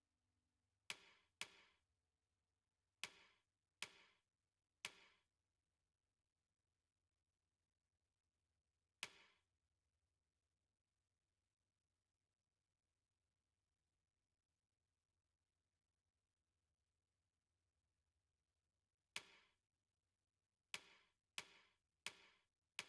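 Short menu clicks sound now and then as a selection moves through a list.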